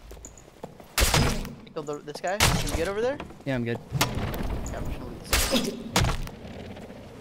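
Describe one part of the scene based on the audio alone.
Swords clash and clang in combat.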